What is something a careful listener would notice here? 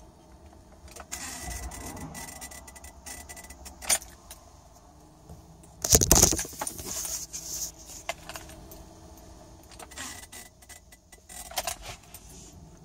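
Keys jingle and click in an ignition.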